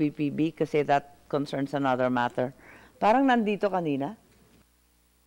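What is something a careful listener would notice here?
A middle-aged woman speaks into a microphone with animation.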